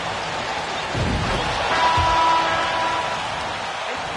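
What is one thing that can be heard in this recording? A crowd cheers loudly for a moment.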